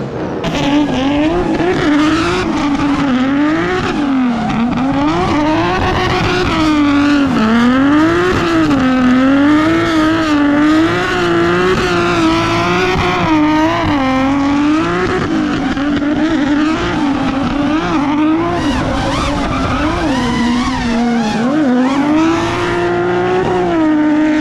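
A car engine revs hard, rising and falling again and again.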